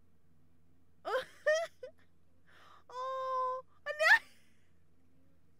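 A young woman laughs with high squeals, close to a microphone.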